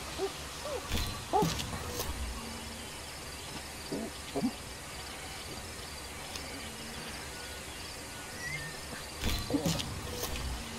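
Apes grunt and hoot close by.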